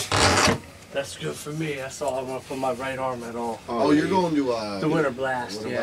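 Adult men talk nearby.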